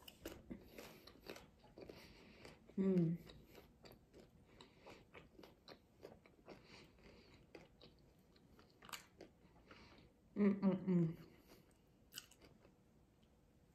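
A young woman chews food with soft, wet mouth sounds close to a microphone.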